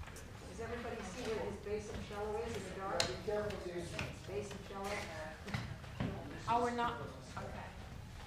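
Footsteps cross a wooden stage.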